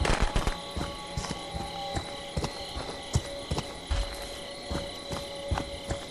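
Heavy footsteps thud on ground and wooden boards.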